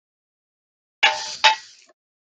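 A metal tin lid clicks and scrapes as it is handled.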